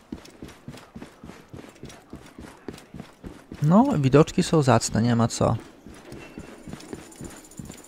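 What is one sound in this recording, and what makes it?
Footsteps run quickly across a stone floor.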